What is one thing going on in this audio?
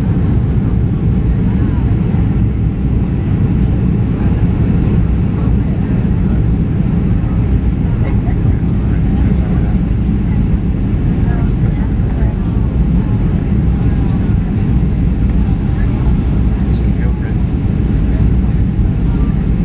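Jet engines roar with a steady, low rumble, heard from inside the cabin of an airliner descending to land.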